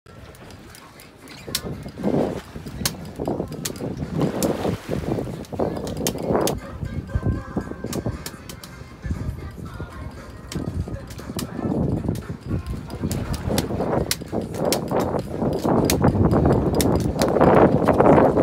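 A fishing reel's crank clicks as it is wound.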